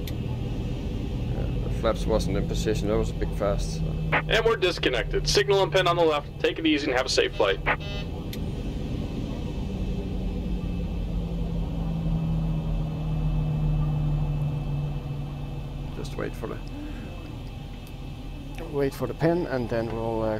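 An aircraft engine hums steadily.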